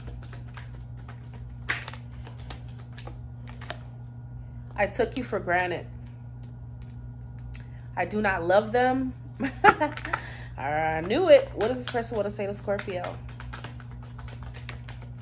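Playing cards shuffle and riffle softly.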